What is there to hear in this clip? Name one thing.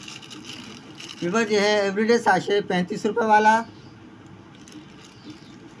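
A plastic wrapper crinkles in a man's hand.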